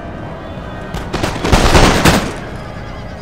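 Muskets fire in a loud, rattling volley.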